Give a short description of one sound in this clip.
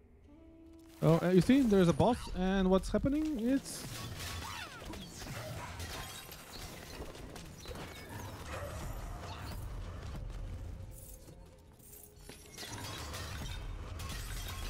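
Magic blasts burst with loud whooshes.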